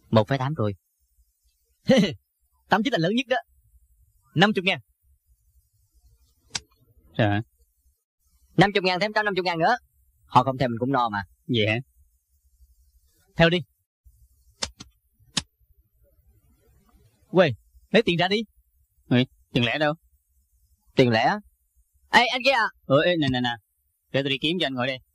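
A middle-aged man talks with animation, close by.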